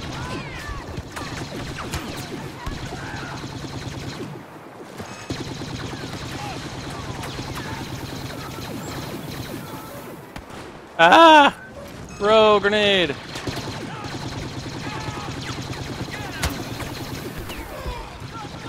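Blaster rifles fire in rapid bursts.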